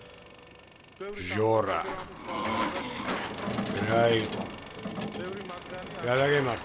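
A middle-aged man speaks with feeling, close by.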